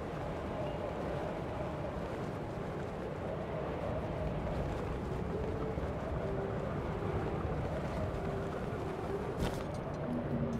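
Wind rushes loudly past while gliding through the air.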